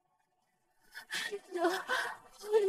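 A young woman moans breathily nearby.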